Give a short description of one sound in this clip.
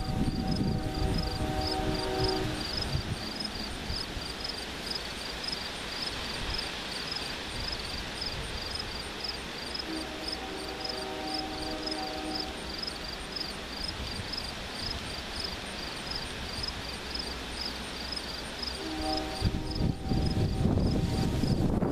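A train horn blows in long blasts in the distance.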